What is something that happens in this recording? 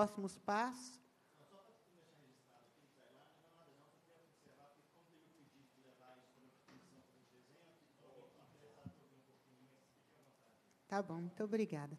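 People murmur quietly in the background.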